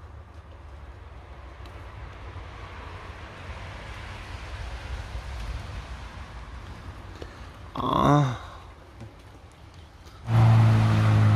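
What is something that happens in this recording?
A man talks quietly close by.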